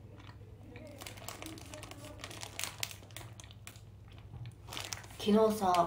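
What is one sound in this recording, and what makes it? A plastic food wrapper crinkles in someone's hands.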